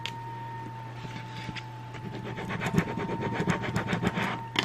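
A hand rubs and smooths paper with quick scratchy strokes.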